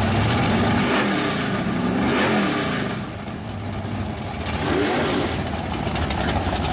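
A second drag car engine revs and rumbles nearby.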